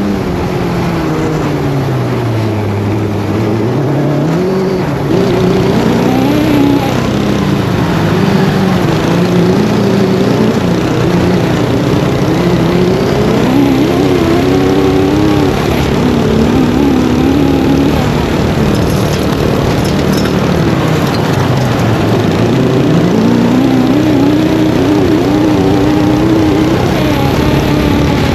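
An off-road buggy engine revs up and down loudly throughout.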